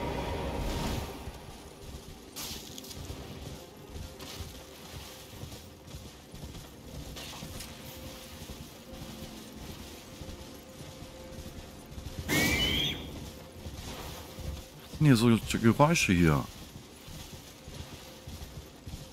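Footsteps rustle through tall dry grass.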